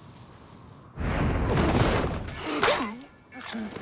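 A body drops through the air and lands in a pile of dry grass with a rush and rustle.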